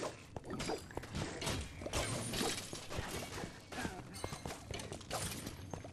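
Video game magic beams zap and crackle.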